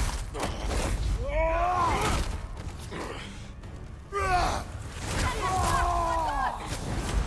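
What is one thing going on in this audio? Heavy blows land with dull thuds and sharp slashes.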